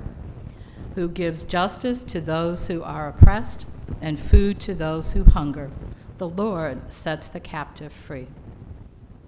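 A woman reads aloud calmly through a microphone.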